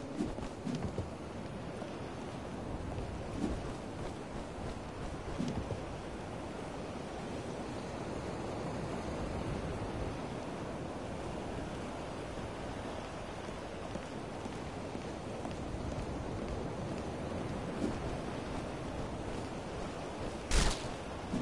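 A wooden barrel shuffles and scrapes across cobblestones.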